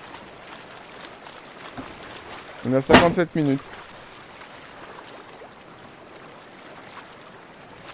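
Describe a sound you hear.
Waves slosh and lap steadily on open water.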